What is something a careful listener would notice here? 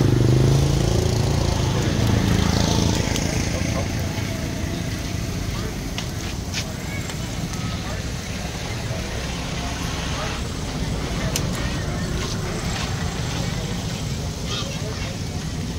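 Meat sizzles steadily on a hot grill.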